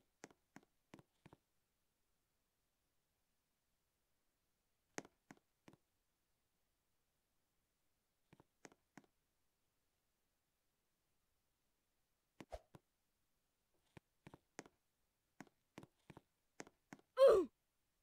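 Light footsteps tap quickly on a hard surface.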